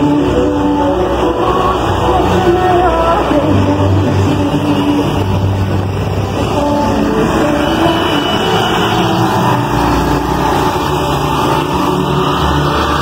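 A truck engine rumbles as the truck drives slowly past.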